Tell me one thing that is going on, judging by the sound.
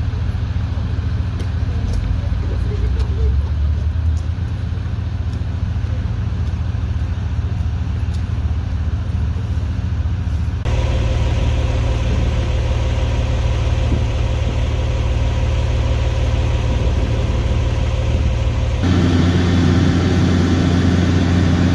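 A large truck engine idles nearby with a low, steady rumble.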